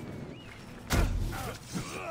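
A sword strikes a shield with a sharp clang.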